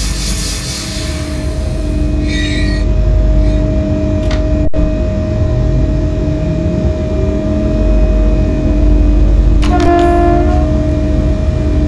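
An electric train's motors whine, rising in pitch as the train speeds up.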